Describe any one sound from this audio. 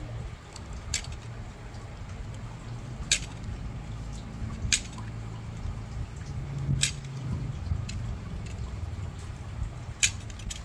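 A small knife scrapes and clicks sharply against a hard object, close by.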